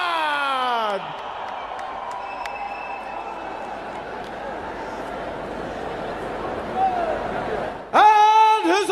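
A large crowd cheers and murmurs in an arena.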